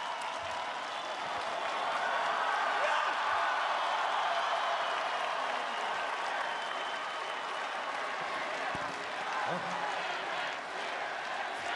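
A large crowd cheers and chatters loudly in a vast open space.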